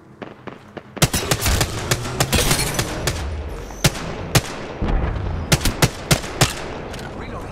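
A rifle fires in rapid bursts of sharp shots.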